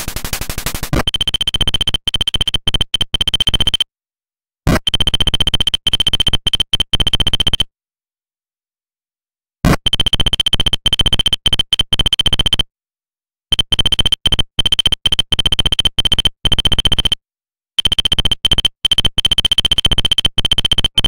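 Rapid high electronic blips chirp as game text prints out, in bursts with short pauses.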